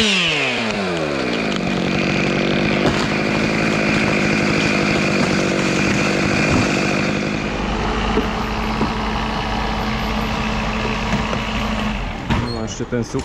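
A chainsaw engine idles steadily close by.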